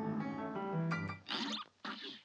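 Bright, bouncy game music plays and stops abruptly.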